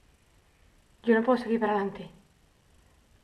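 A young woman speaks quietly and nervously, close by.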